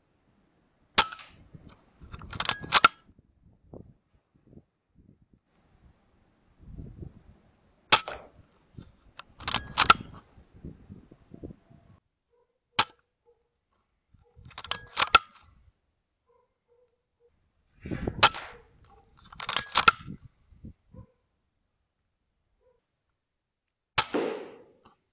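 An air rifle fires with a sharp crack, again and again.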